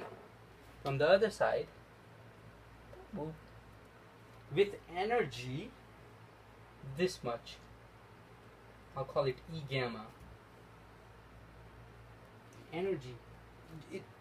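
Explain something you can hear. A man speaks calmly in short phrases, close by, as if explaining.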